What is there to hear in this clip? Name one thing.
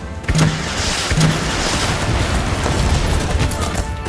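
Explosions boom in a game.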